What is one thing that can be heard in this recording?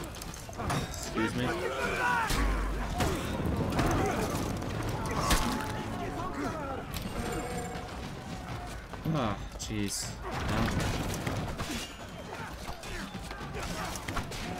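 Swords clash and armour clanks in a fight.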